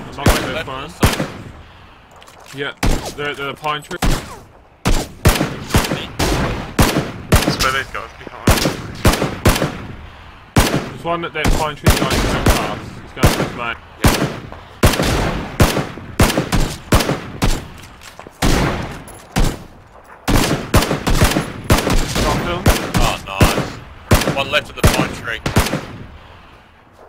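Rifle shots crack out one after another, loud and close.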